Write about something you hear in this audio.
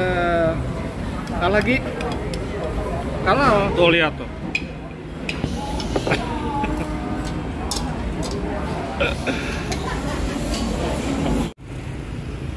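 A crowd chatters in a busy, echoing indoor hall.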